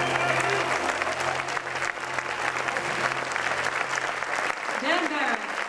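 A saxophone plays a jazz tune.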